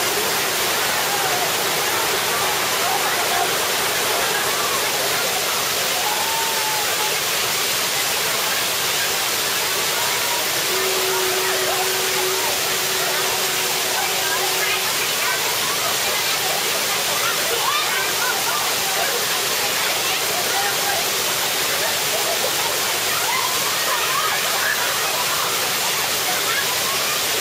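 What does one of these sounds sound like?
Children shout and chatter playfully nearby.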